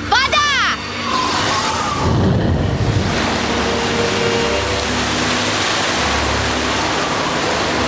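A whirlwind roars loudly.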